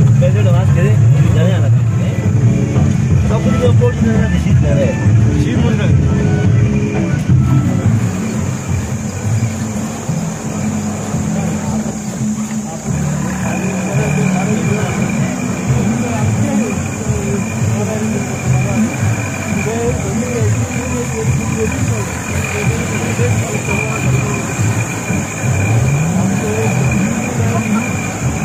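A tractor engine chugs loudly and steadily.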